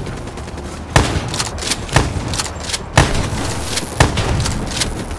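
Rifle shots crack loudly, one at a time, about a second apart.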